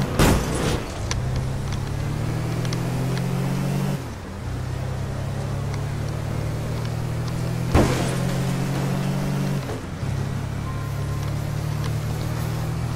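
A heavy truck engine hums steadily and shifts gear as it drives.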